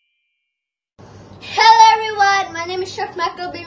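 A young boy sings loudly and close by.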